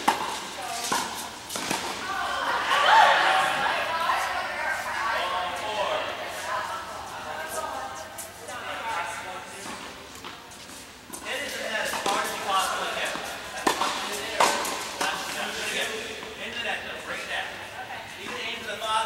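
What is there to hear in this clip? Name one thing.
Tennis rackets strike a ball back and forth in a large echoing hall.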